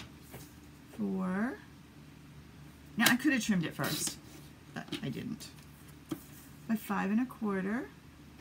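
Card stock slides and rustles across a paper trimmer.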